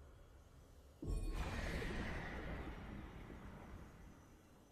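A game sound effect bursts loudly and slowly fades.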